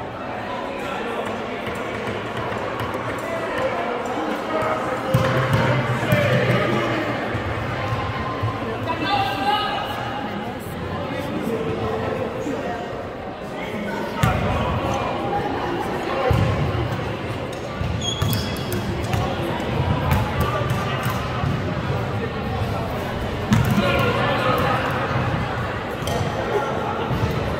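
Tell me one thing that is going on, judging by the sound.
Young men and spectators chatter throughout a large echoing gym.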